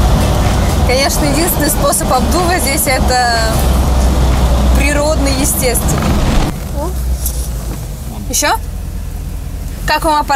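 A young woman sings close by.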